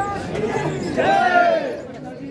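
A man calls out loudly nearby.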